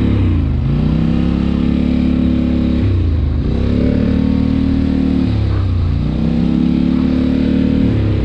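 A quad bike engine drones loudly, rising and falling in pitch as it shifts gears.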